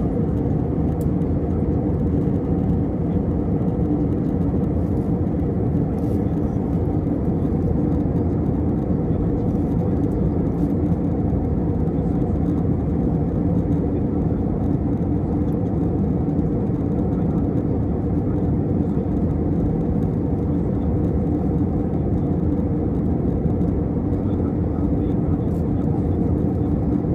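Jet engines roar with a low, steady rumble, heard from inside an airliner cabin in cruise.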